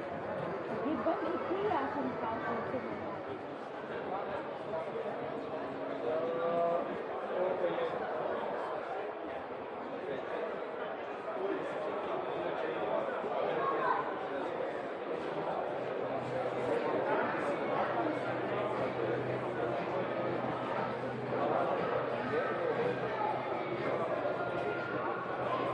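A crowd of people chatters throughout a large echoing hall.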